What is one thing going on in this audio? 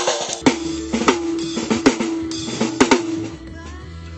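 A drummer strikes a snare drum and cymbal in quick hits.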